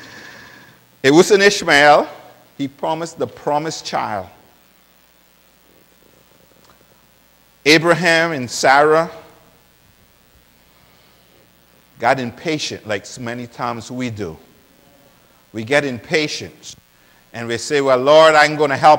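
A man speaks with animation through a microphone, pausing often.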